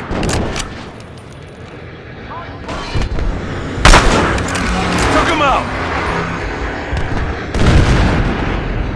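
Loud rifle shots crack and boom, echoing afterwards.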